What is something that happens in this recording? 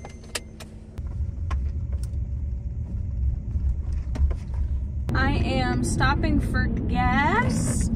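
A car engine rumbles low while driving.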